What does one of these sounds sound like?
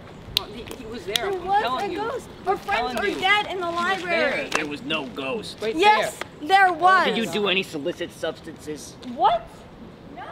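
Teenagers talk with animation nearby.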